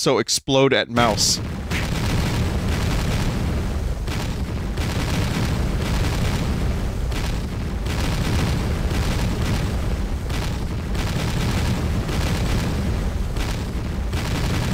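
Explosions boom and rumble one after another.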